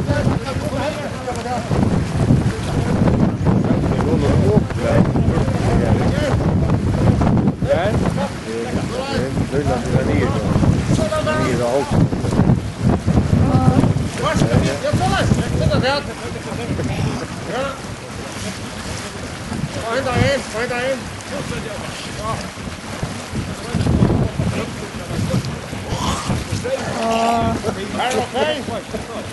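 Several people call out to each other across the water.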